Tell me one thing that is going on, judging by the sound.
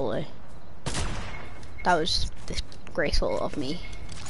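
A sniper rifle fires with sharp cracks.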